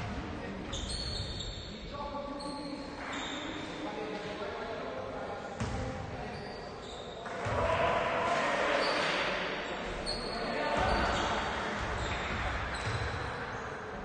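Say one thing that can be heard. Young men call out to one another across the court.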